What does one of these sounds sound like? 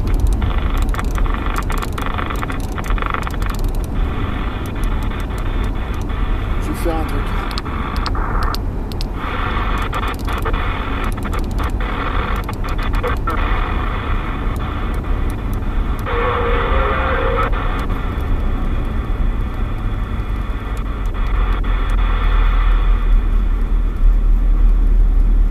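Radio static hisses and crackles from a loudspeaker throughout.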